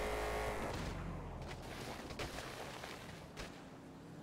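A body thuds and tumbles onto pavement.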